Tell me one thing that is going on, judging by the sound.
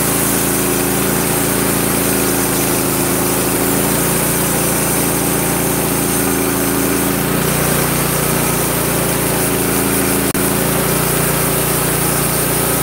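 A band saw blade whines steadily as it cuts through a log.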